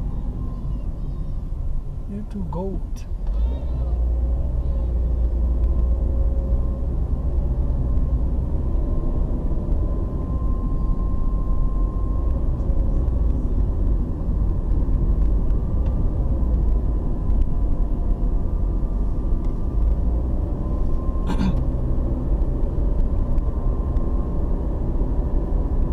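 A car drives along an asphalt road, heard from inside the car, with a low engine and road rumble.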